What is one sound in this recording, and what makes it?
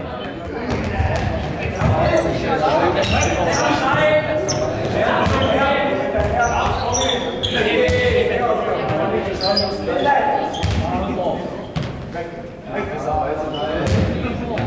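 A ball bounces and is struck with thuds.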